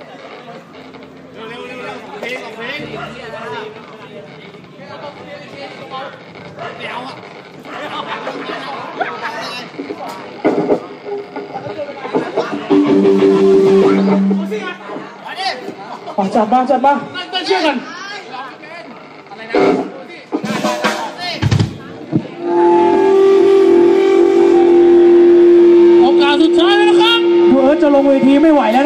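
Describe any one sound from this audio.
A young man sings into a microphone over the band.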